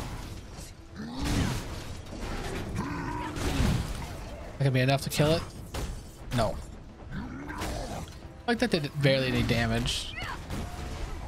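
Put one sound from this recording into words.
A giant creature roars and grunts.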